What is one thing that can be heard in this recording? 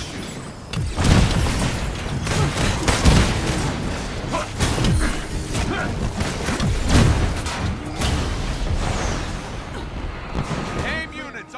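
Blasts and impacts crash loudly in a fight.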